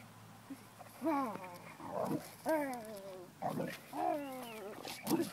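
A woman talks to a dog in an animated, high voice close by.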